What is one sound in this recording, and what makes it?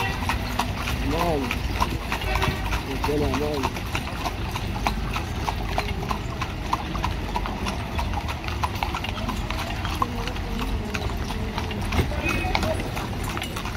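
A horse's hooves clop on a paved road.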